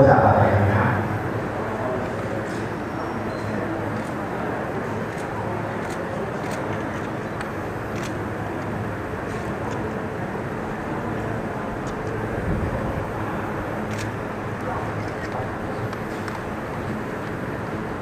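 A crowd murmurs quietly in the background.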